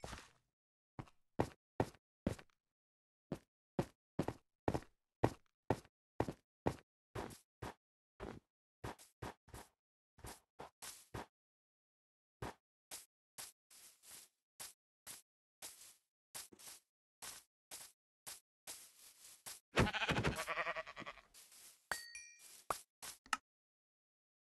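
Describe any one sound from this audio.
Footsteps crunch on stone and grass in a steady rhythm.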